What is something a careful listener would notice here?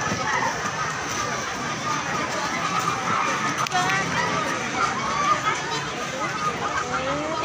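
Shoes stamp on dirt ground in rhythm.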